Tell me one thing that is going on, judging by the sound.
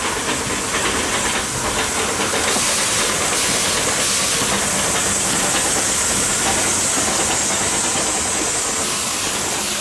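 A steam locomotive hisses loudly as it pulls away.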